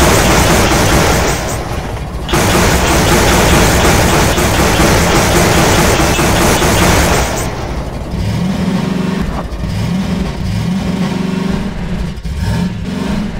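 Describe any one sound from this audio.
A buggy engine roars and revs as it drives.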